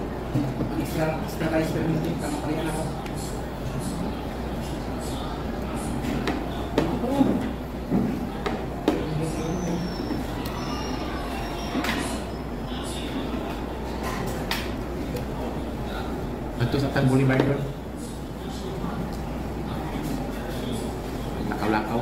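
Cutlery and plates clink and scrape.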